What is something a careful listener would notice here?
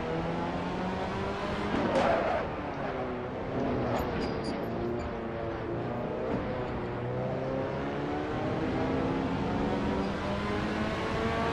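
A racing car engine roars steadily, its pitch climbing and dropping as the gears shift.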